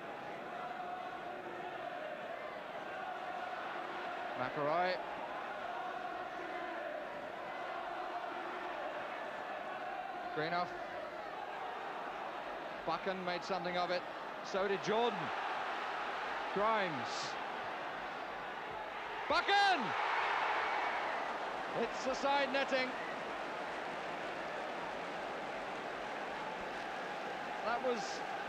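A large crowd murmurs and roars steadily in a big open stadium.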